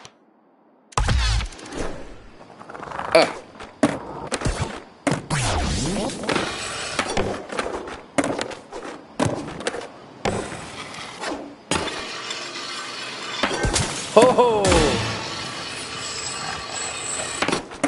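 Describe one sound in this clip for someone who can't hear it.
Skateboard wheels roll and grind on concrete and metal rails.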